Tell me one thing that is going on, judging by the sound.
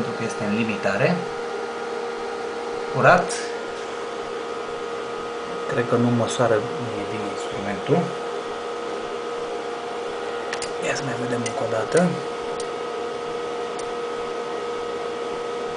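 An electronic device hums with a steady whine.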